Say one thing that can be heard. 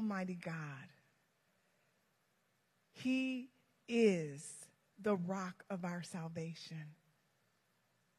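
A woman speaks through a microphone in an echoing hall, in short phrases with pauses.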